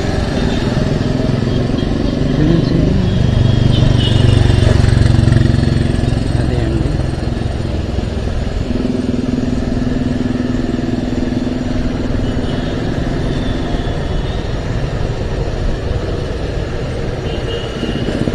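Traffic roars along a busy road outdoors.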